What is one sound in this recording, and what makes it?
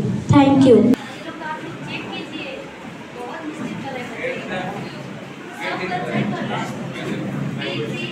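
Children murmur and talk quietly nearby.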